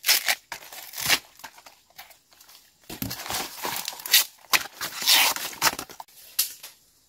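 A machete chops through bamboo stalks with sharp knocks.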